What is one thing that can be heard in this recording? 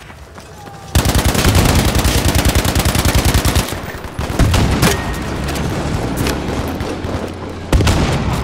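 A rifle fires loud sharp shots.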